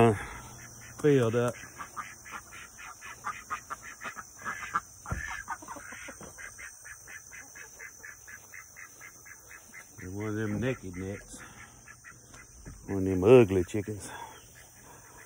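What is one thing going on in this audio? Chickens cluck and chatter close by.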